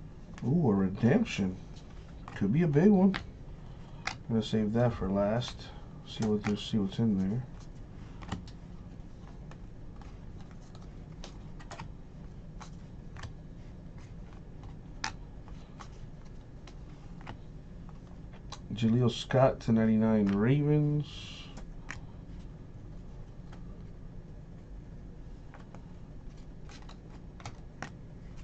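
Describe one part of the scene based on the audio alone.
Trading cards rustle and flick as hands shuffle through them.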